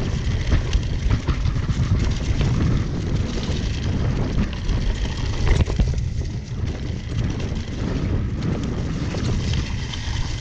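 Bicycle tyres roll and crunch over dry leaves on a dirt trail.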